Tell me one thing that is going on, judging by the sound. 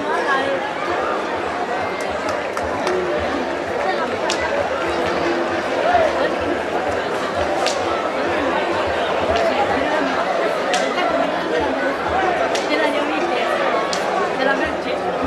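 A large crowd of men and women chatters and calls out loudly outdoors.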